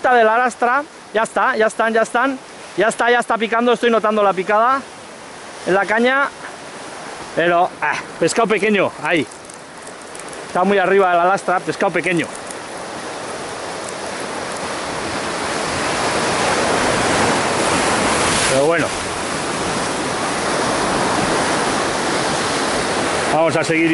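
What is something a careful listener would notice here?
Waves crash and surge against rocks.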